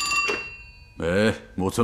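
A man speaks gruffly into a telephone.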